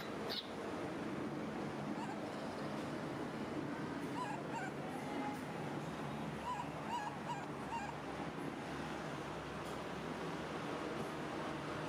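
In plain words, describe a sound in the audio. A baby monkey sucks on a milk bottle.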